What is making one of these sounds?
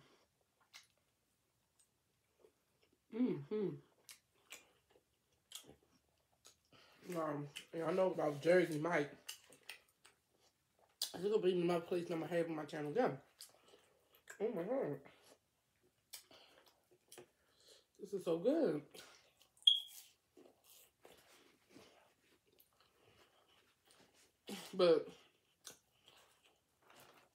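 A young woman chews food close to a microphone with soft wet crunches.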